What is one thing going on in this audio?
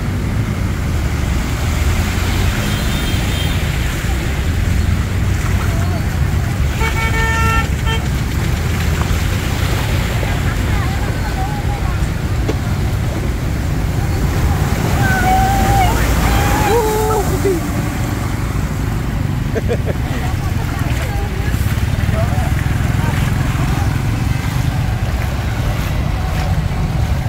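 Water splashes and sloshes as vehicles wade through a flood.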